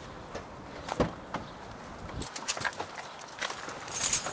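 Hands knock and rub against a car door.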